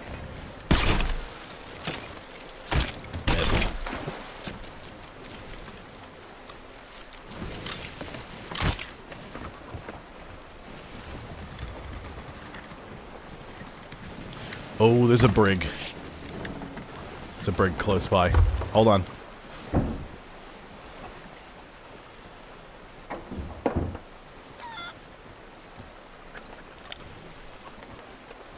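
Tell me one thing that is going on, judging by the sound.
Waves slosh against a wooden ship.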